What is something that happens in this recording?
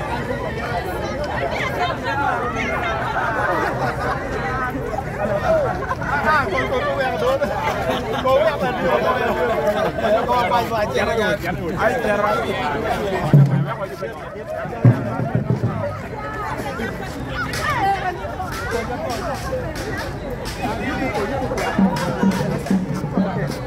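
A crowd of young men and women chatters and cheers loudly outdoors.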